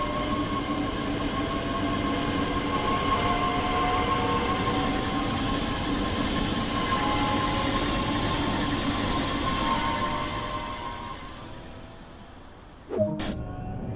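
An electric train pulls away with a humming motor whine that slowly fades into the distance.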